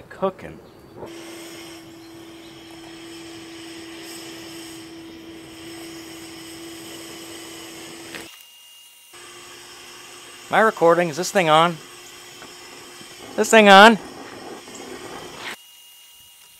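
A cutting torch hisses and roars steadily.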